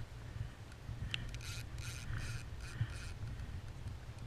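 A spinning reel clicks as it is wound.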